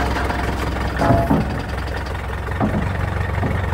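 A heavy machine knocks and clanks against a truck bed.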